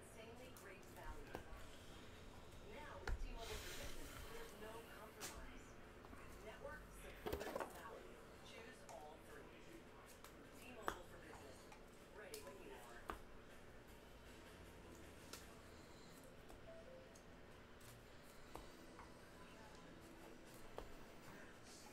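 Trading cards rustle and click as a hand handles them.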